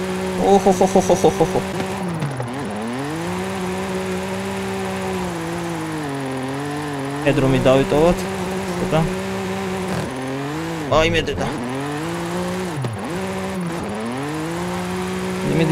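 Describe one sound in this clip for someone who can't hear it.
A car engine roars and revs up and down through gear changes.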